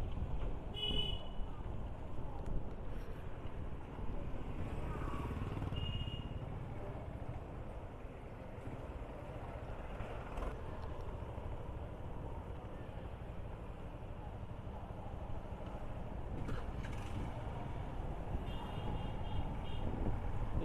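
A vehicle horn beeps briefly a few times.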